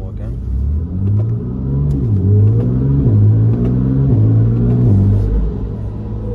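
A car engine revs in quick short bursts.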